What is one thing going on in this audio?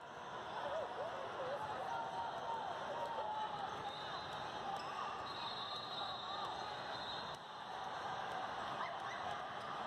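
A basketball bounces on a court floor.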